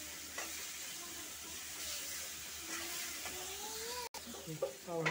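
Food sizzles as it fries in a pan.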